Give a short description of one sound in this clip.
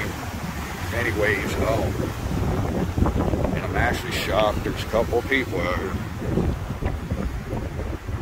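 Waves crash and wash onto a beach.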